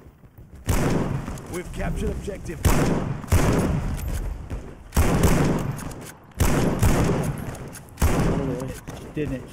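Rifle shots fire loudly, one after another, each ringing out briefly.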